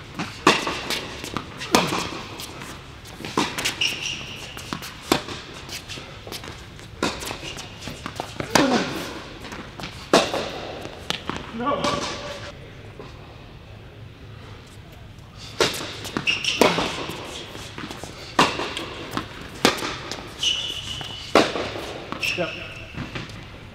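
Tennis balls are struck with rackets in a rally, with sharp pops echoing in a large indoor hall.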